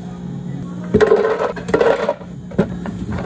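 Ice rattles and clatters inside a plastic blender jug.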